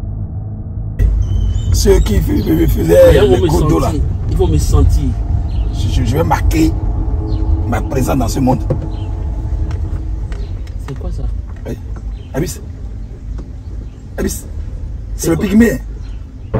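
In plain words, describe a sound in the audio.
A car rumbles along a bumpy road.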